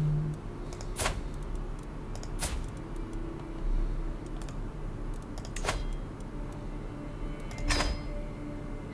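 Short interface clicks sound as menus open and close.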